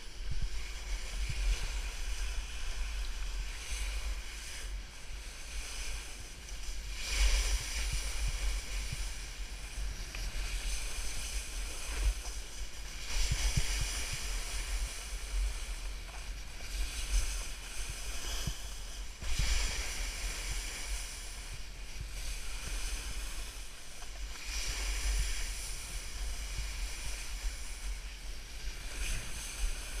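A snowboard scrapes and hisses over snow, surging with each turn.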